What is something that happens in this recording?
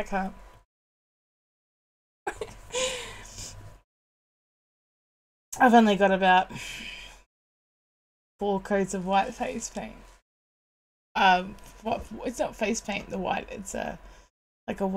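A woman speaks with animation into a close microphone, in short bursts with pauses.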